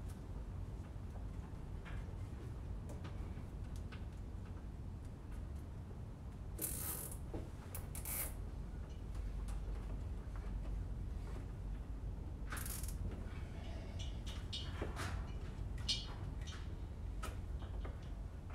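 Small parts click and knock against each other.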